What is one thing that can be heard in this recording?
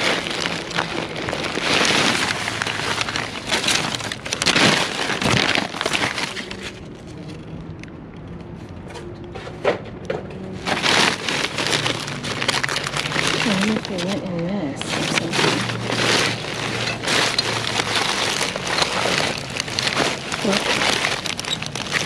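Plastic bags crinkle and rustle.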